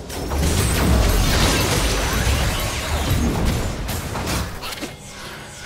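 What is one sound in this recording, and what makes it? Game spell impacts thud in quick bursts.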